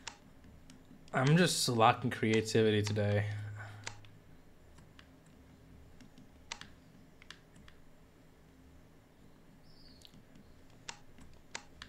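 Soft menu clicks tick now and then as a selection moves.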